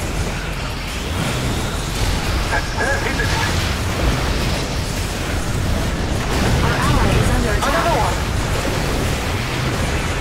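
Explosions boom and rumble throughout a battle.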